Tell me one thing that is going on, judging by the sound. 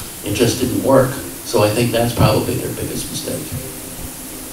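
An elderly man speaks into a microphone with animation.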